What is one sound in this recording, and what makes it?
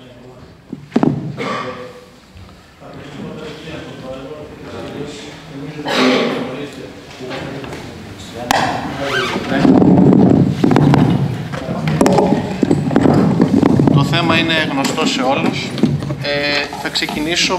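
Several men talk loudly at once, their voices overlapping.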